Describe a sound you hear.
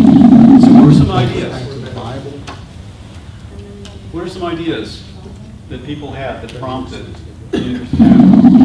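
A man speaks calmly to a group in a room.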